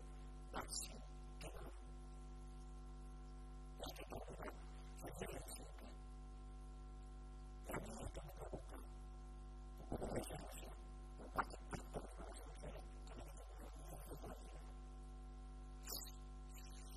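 A middle-aged man speaks calmly and earnestly into a close microphone, with short pauses.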